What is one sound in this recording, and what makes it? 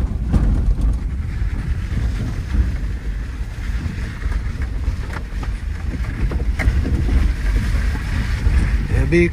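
A car body rattles and knocks over bumps.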